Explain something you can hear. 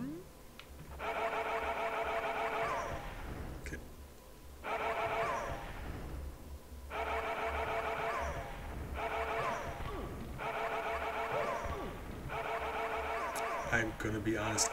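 Game music plays in repeating phrases.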